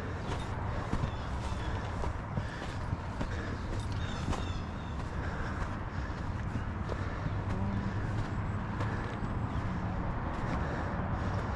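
Footsteps crunch on a dry dirt trail.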